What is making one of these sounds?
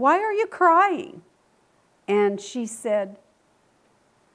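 A middle-aged woman speaks expressively, close to a microphone.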